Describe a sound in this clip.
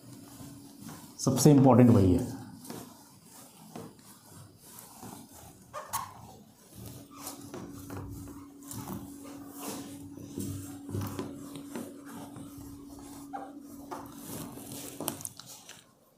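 An eraser rubs across a whiteboard.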